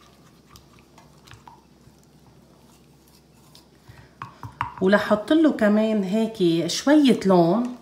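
A wooden spoon stirs and scrapes in a small metal pan.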